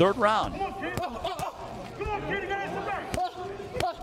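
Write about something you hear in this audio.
Boxing gloves thud as punches land.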